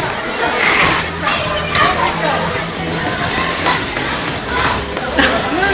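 A crowd of children and teenagers chatters and shouts in a large echoing hall.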